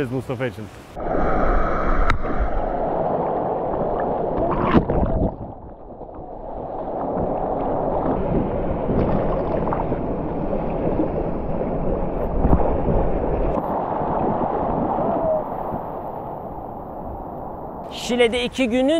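Waves splash and churn around a surfboard.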